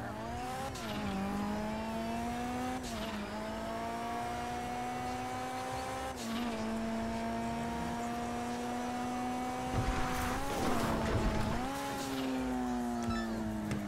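A car engine revs steadily, rising and dropping in pitch as the gears change.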